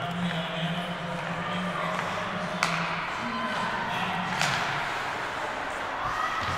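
Skates scrape across the ice of a large echoing rink.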